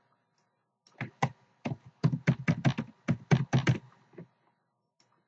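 Keys click rapidly on a computer keyboard.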